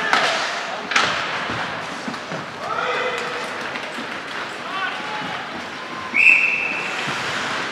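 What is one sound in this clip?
Skate blades scrape across ice in a large echoing arena.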